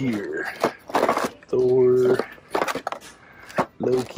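A hand picks up a plastic toy box from a shelf.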